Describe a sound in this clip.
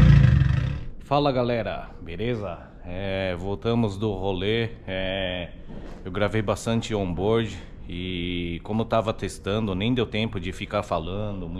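A middle-aged man talks close to the microphone with animation.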